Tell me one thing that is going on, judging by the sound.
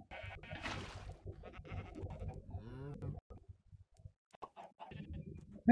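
Water splashes as it is poured out and starts to flow.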